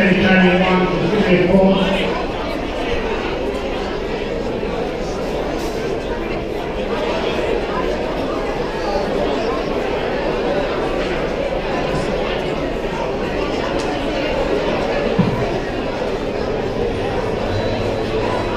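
A band plays music in a large echoing hall.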